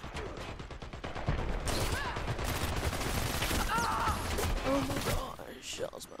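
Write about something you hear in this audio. Rapid gunshots rattle loudly.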